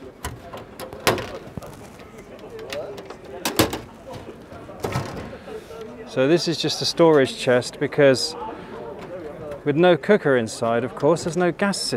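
A metal latch clicks and snaps on a box.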